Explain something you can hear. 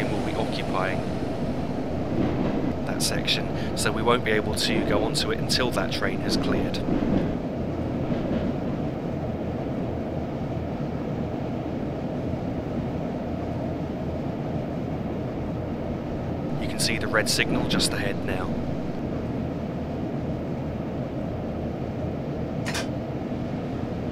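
A train's engine rumbles steadily from inside the cab.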